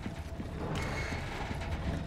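Boots step on a wooden floor.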